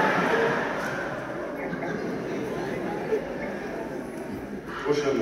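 A man speaks with animation through a microphone and loudspeakers in a large echoing hall.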